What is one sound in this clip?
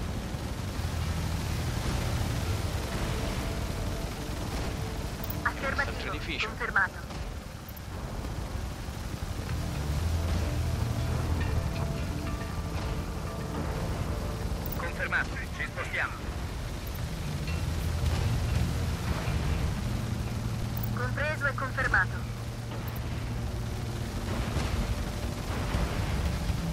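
Tank engines rumble low and steadily.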